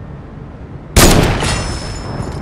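A sniper rifle fires a loud, sharp shot that echoes away.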